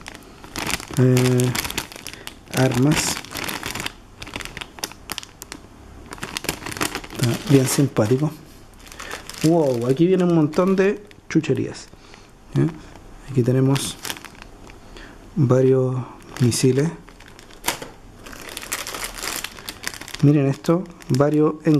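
Plastic wrapping crinkles and rustles as it is handled close by.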